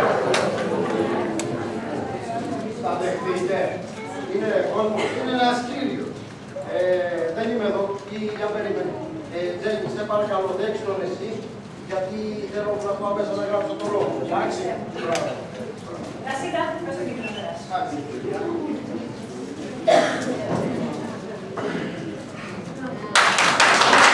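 A man speaks loudly and with animation on a stage in an echoing hall.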